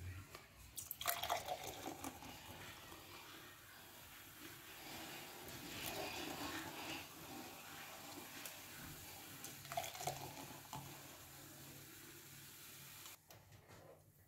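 Liquid pours and splashes into glasses.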